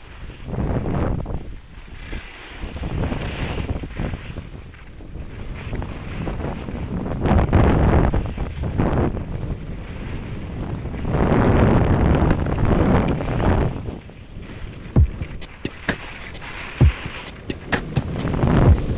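Skis carve and scrape over snow in surging waves.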